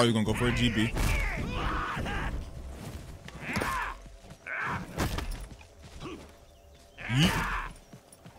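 Metal weapons clash and strike.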